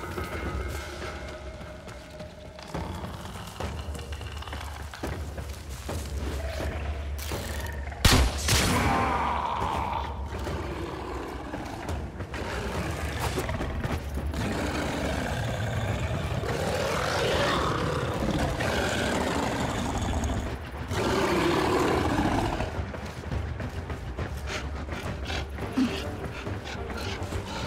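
Footsteps tap quickly on metal floors.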